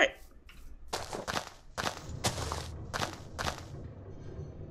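Dirt crunches as blocks are dug out.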